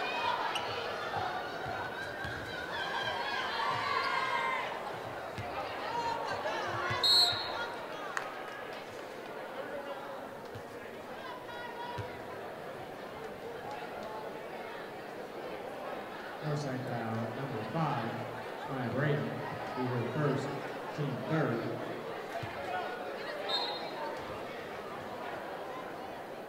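A large crowd cheers and chatters in a big echoing hall.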